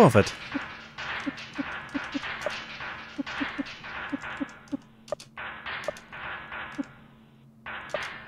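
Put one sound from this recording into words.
Short electronic blips sound as a game menu cursor moves.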